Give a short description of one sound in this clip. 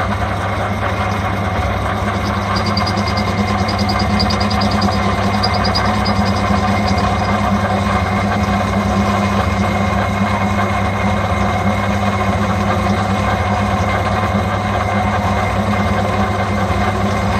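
A cutting tool scrapes and hisses against turning metal.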